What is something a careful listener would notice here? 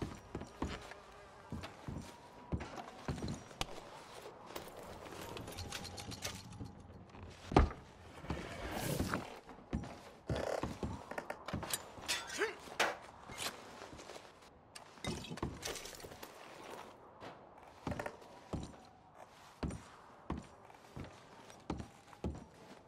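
Boots thud on creaking wooden floorboards.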